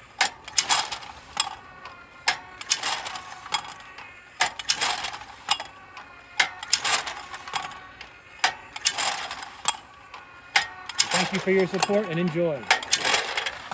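A clay target thrower snaps loudly as it flings targets, over and over.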